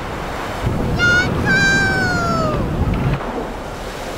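A seagull cries out overhead.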